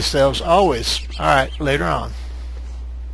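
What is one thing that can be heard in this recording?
A bird caws shrilly several times.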